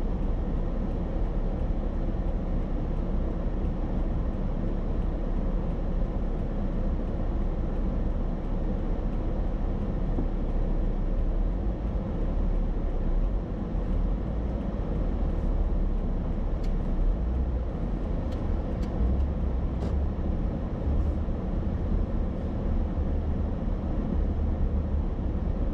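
Cars drive past nearby.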